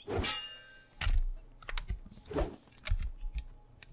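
Swords swing and strike with sharp metallic hits.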